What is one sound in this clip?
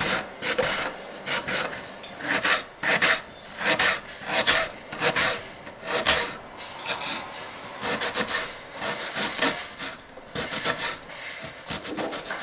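A knife slices through an onion and taps on a wooden board.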